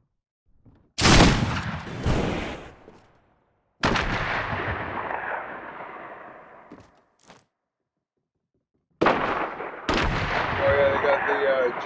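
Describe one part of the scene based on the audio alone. Sniper rifle shots crack loudly and echo away.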